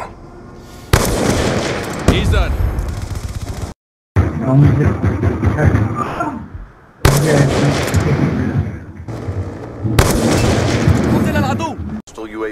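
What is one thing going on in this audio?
A sniper rifle fires loud single shots.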